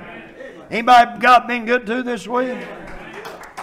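A middle-aged man speaks emphatically through a microphone in a reverberant room.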